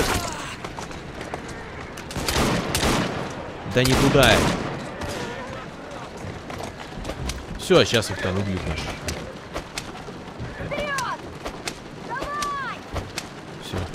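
Horses' hooves clatter on a stone street.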